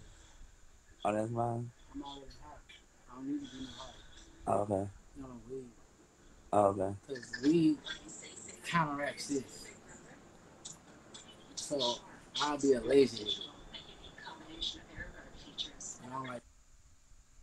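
A man talks casually, heard through a phone's microphone.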